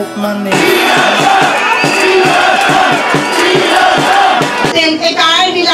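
A large crowd sings together outdoors.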